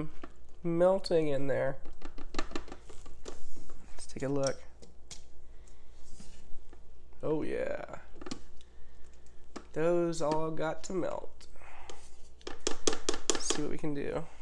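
A spatula stirs and scrapes a thick mixture in a pot.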